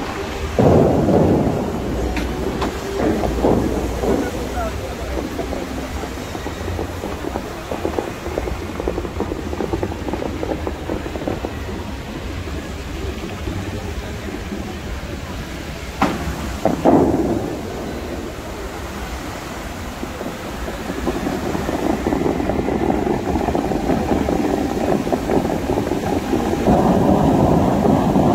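Fountain jets roar and splash onto water outdoors.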